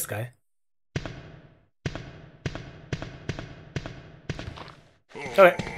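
Footsteps thud on a hard floor at a steady pace.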